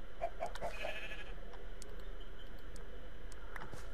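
A chicken clucks nearby.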